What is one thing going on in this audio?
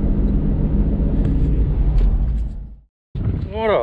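A car engine rumbles steadily while driving.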